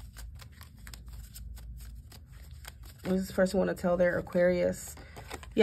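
Playing cards slide softly against each other.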